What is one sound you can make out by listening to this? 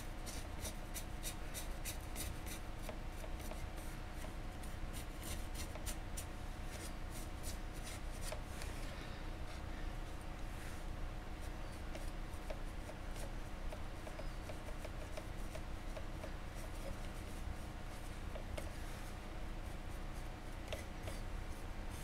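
A heavy metal ornament clicks and scrapes as it is turned on a table.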